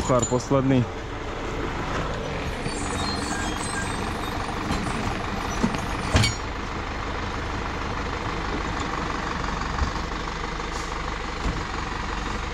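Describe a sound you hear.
A tractor engine runs steadily nearby.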